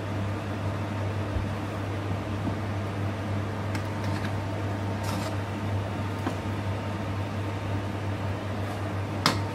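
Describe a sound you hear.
A gas burner hums steadily.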